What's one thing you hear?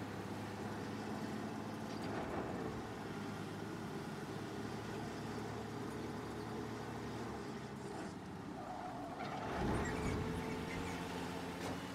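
A truck engine rumbles steadily as the truck drives along a street.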